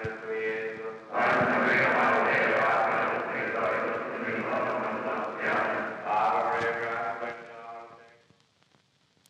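A group of men sings together.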